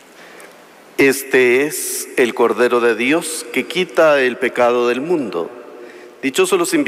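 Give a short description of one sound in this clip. A woman sings with vibrato through loudspeakers in a large echoing hall.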